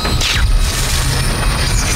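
A fist smashes against a metal hull.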